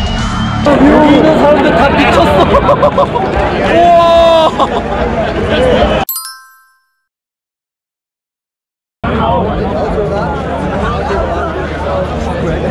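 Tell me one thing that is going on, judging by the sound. A young man talks and laughs close to the microphone.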